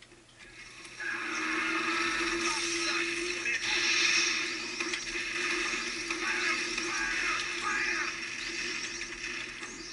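A flamethrower roars loudly from game speakers.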